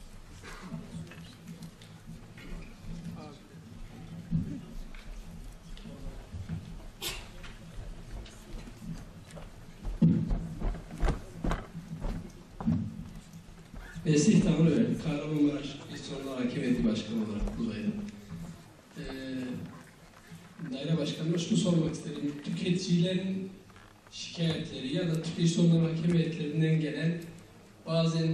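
A man speaks through a microphone and loudspeakers in a large hall, calmly addressing an audience.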